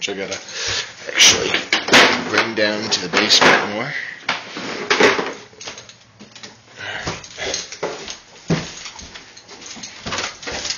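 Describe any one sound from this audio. Hands rub and bump against a phone held close, with loud rustling and knocking.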